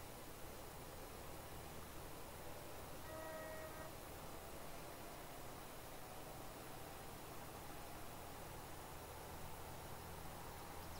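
A tractor engine hums steadily as it drives and speeds up.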